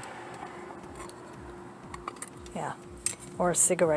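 A small metal case clicks open.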